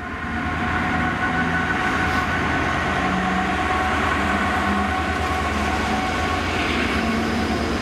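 A diesel locomotive rumbles and drones loudly close by.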